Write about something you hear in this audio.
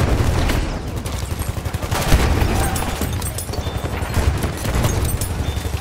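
Gunshots fire in rapid bursts with loud booming.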